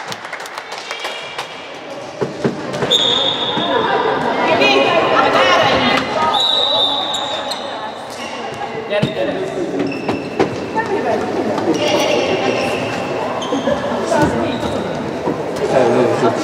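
Young girls shout and cheer in a large echoing hall.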